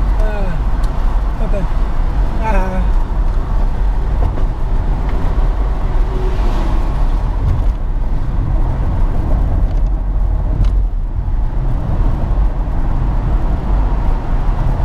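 A car engine hums and tyres roar steadily on a highway.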